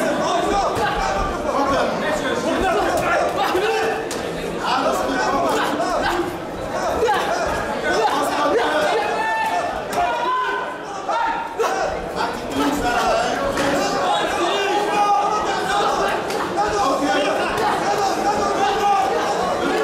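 Gloved punches and kicks thud against bodies.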